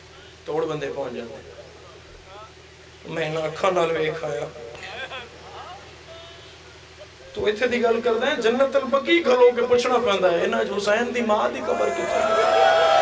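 A young man speaks with emotion through a microphone.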